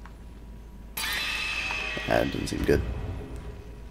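A game menu opens with a bright chime.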